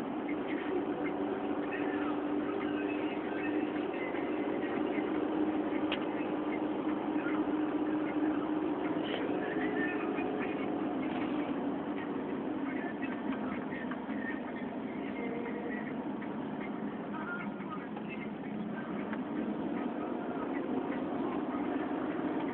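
Tyres roll over a wet road with a constant hiss.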